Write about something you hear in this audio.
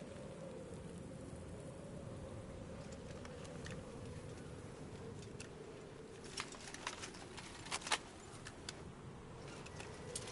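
A cassette player clicks as buttons are pressed.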